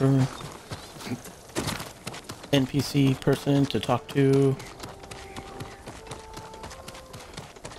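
Footsteps crunch quickly over snow and stone.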